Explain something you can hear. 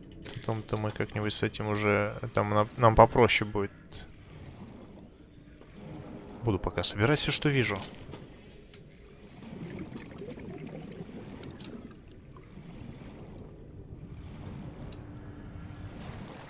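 Water swirls and bubbles softly as a diver swims underwater.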